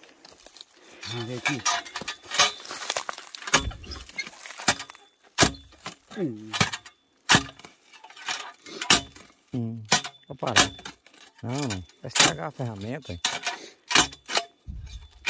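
A post-hole digger thuds and scrapes into dry, stony soil.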